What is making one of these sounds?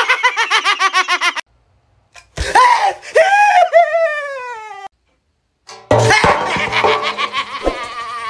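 A young man laughs wildly close by.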